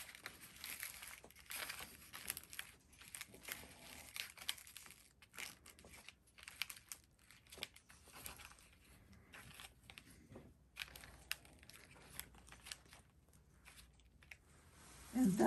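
Thin paper pieces rustle and crinkle as hands shift them on a hard surface.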